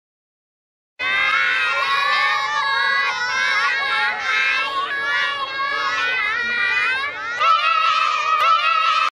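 A group of young children sings loudly together.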